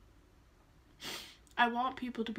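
A young woman sniffs sharply.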